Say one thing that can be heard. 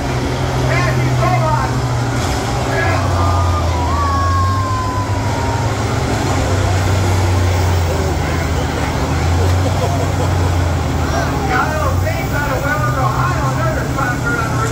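A large crowd chatters in the open air.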